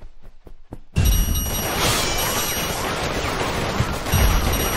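Blades slash and clash rapidly in a fierce fight.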